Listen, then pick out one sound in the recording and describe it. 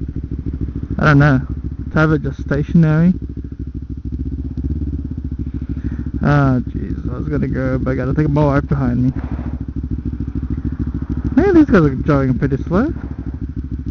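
A motorcycle engine revs in short bursts.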